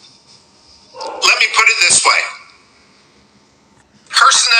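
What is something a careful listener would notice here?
A middle-aged man speaks over an online call.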